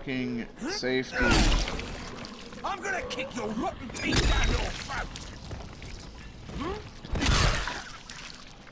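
Heavy blows land with dull, wet thuds.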